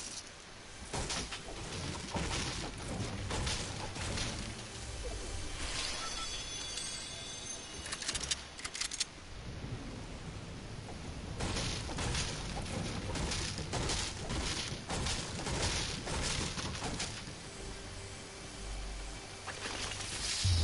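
A pickaxe strikes wooden walls with sharp knocks.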